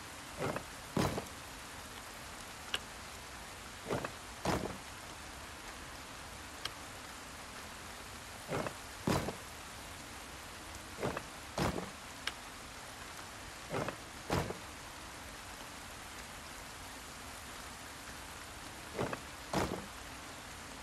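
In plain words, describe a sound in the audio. Short soft whooshing sounds come in pairs as puzzle tiles turn.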